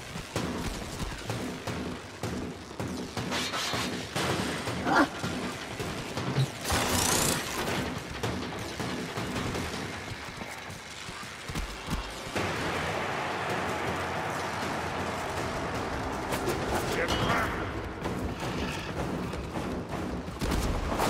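Energy blades swing and whoosh in quick swipes.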